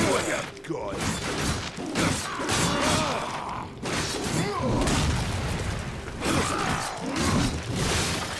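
Heavy metal blades clang and slash in a fight.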